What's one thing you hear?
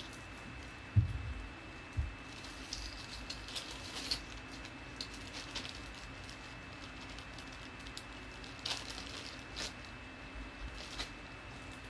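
Small metal pieces click and jingle close by.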